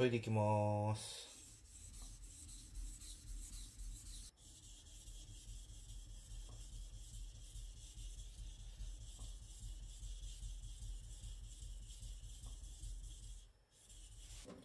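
A knife blade scrapes back and forth on a wet sharpening stone.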